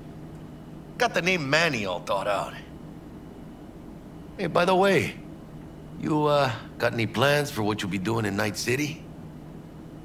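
A man speaks casually in a low voice, close by.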